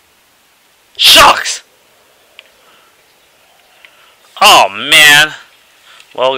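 A young man shouts loudly into a microphone.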